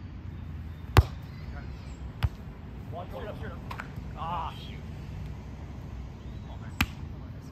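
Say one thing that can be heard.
A volleyball is struck with sharp slaps of the hands.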